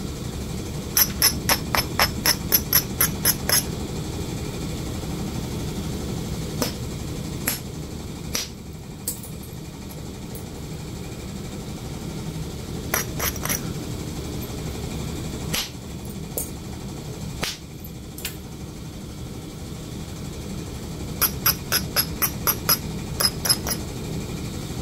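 A hand tool taps rapidly against a hard hoof in short bursts.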